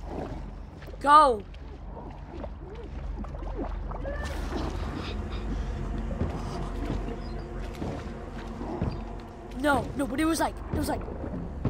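A boy shouts in excitement close to a microphone.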